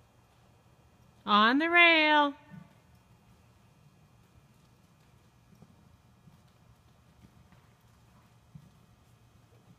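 Horse hooves thud softly on soft sand.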